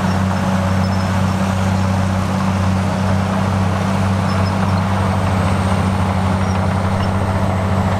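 Loose dirt slides and pours from a tipping truck bed.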